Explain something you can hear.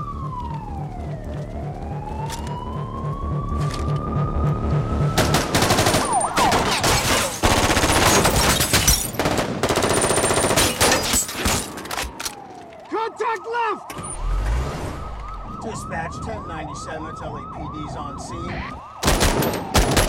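A police siren wails and rises and falls in pitch.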